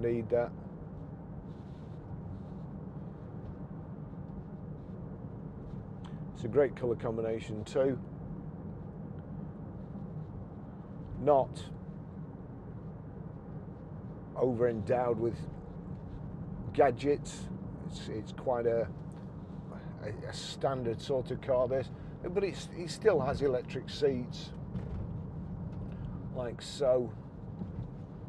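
A middle-aged man talks calmly into a nearby microphone.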